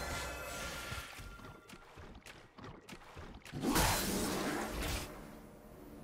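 Magic spell effects whoosh and crackle.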